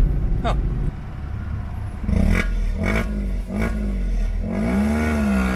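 A car exhaust burbles and rumbles close by outdoors.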